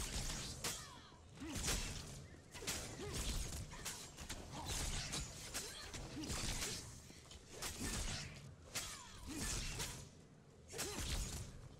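Magic blasts whoosh and crackle in short bursts.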